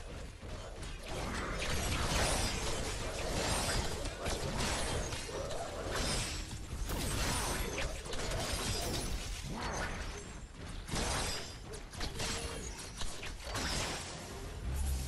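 Energy weapons fire and crackle in rapid bursts.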